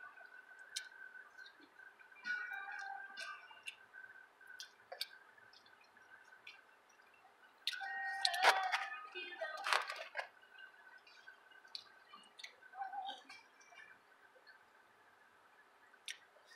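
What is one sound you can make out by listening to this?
A young girl chews food noisily.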